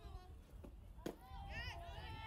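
A softball smacks into a catcher's mitt.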